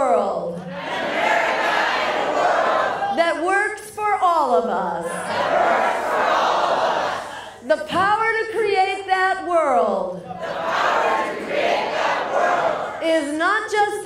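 A large crowd chants the phrases back in unison in a reverberant hall.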